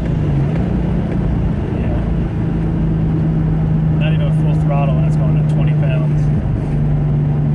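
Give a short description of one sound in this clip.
A man talks calmly nearby over the engine noise.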